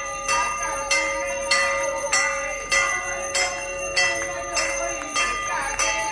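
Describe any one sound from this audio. A large metal bell clangs loudly again and again, ringing on between strikes.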